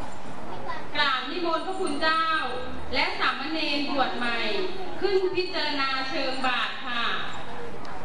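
A man speaks into a microphone over a loudspeaker, echoing in an open hall.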